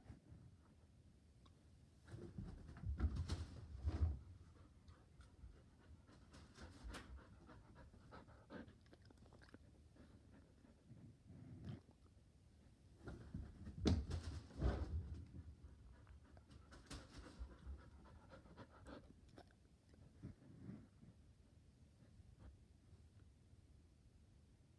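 A dog pants close by.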